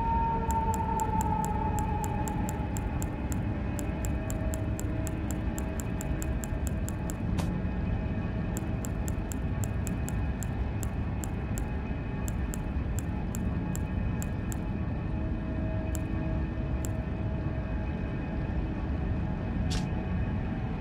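Soft menu clicks tick rapidly as items are scrolled through.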